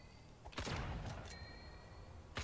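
Sharp electronic zaps of a laser blast ring out.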